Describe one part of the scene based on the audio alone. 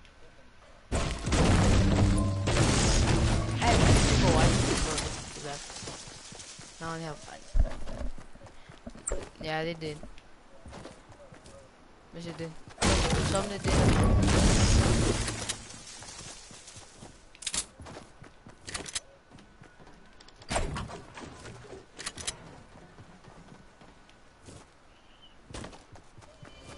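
Footsteps run over grass and gravel.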